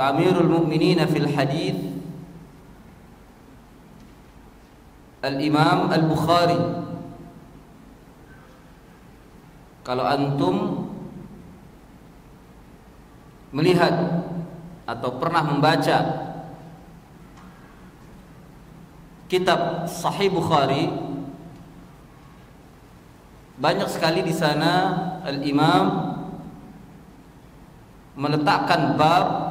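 A middle-aged man speaks calmly into a microphone in phrases with long pauses, in an echoing room.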